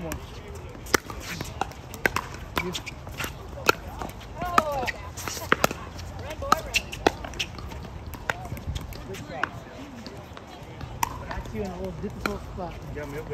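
Paddles hit a plastic ball with sharp pops, back and forth outdoors.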